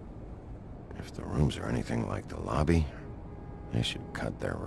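A man speaks in a low, gruff, calm voice.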